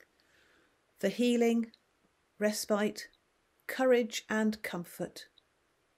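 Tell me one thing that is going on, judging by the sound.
A middle-aged woman speaks calmly and solemnly into a nearby microphone.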